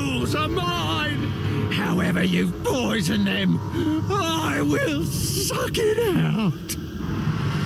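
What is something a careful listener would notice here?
A man growls threateningly in a deep, rough voice.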